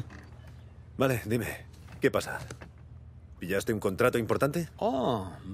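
A younger man asks questions with animation.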